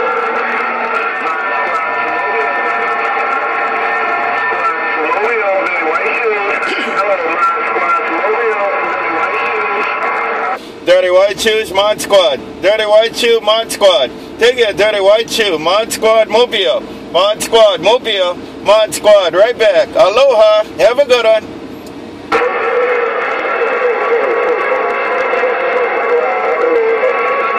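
A radio loudspeaker hisses and crackles with static.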